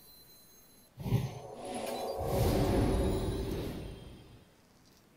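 Game sound effects whoosh and chime as cards are played.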